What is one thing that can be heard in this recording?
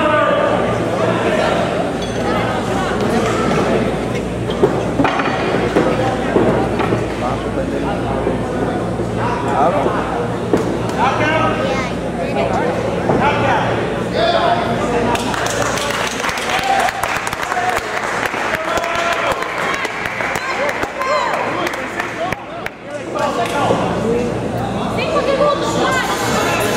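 A crowd of spectators chatters and cheers loudly in a large echoing hall.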